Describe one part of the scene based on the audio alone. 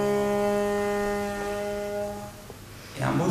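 A bowed string instrument plays long, sustained notes.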